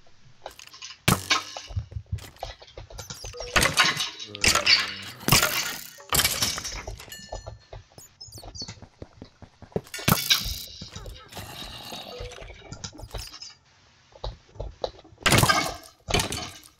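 A sword hits a rattling skeleton with sharp thuds.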